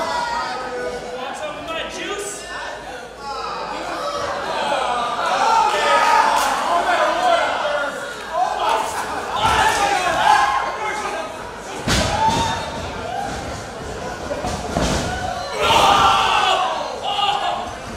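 A man shouts and yelps in pain nearby.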